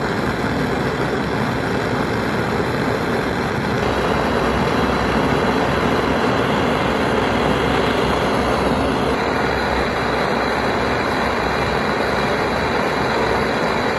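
A blowpipe torch roars.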